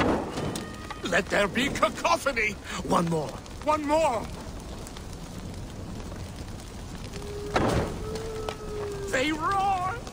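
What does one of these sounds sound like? A man calls out with excitement.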